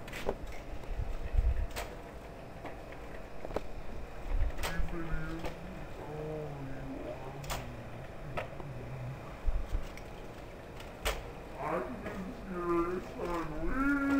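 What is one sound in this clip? A scooter's small wheels roll and click over concrete.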